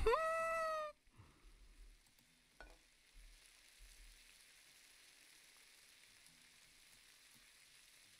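Salmon sizzles softly in a frying pan.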